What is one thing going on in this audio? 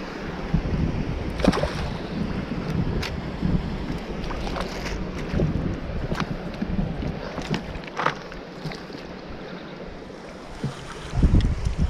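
A fish splashes and thrashes at the water's surface.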